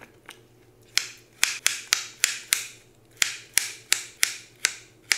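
A knife chops through carrots onto a plastic cutting board in quick, sharp knocks.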